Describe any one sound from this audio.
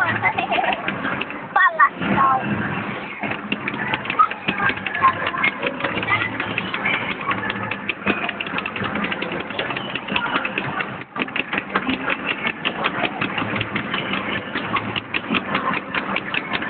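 Arcade game music plays loudly with a driving beat.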